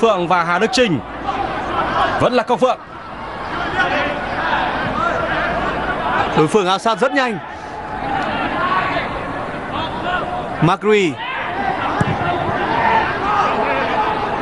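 A large stadium crowd roars and chants steadily in the open air.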